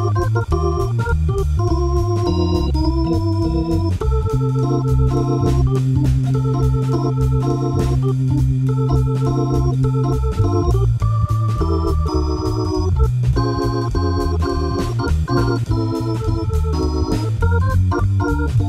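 An organ plays a lively jazz tune.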